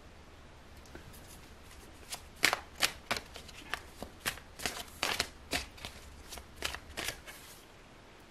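A deck of cards is shuffled, the cards flicking and snapping together.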